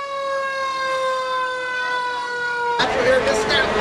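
A fire engine siren wails with a falling tone.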